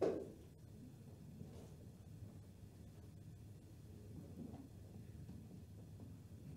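A double bass plays low notes.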